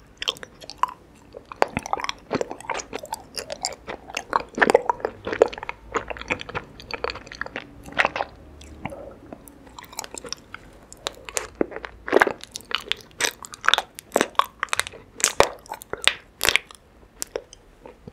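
A young woman chews and smacks wetly close to a microphone.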